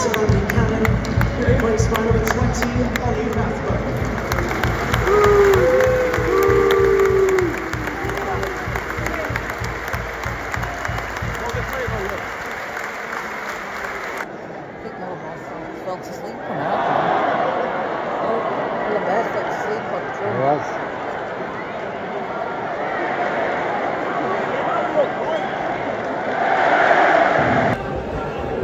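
A large stadium crowd chants and murmurs in the open air.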